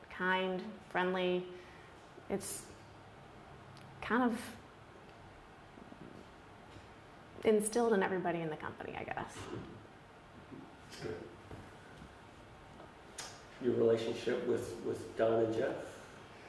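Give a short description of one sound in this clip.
A woman speaks calmly and close by, in short bursts with pauses.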